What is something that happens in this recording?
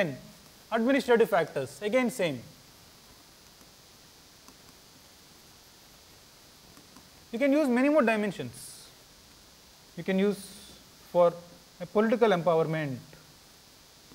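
A man speaks in a lecturing tone, in short bursts with pauses.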